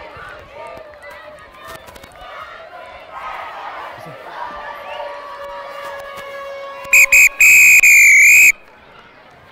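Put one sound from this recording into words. A crowd of children and adults shouts and cheers outdoors.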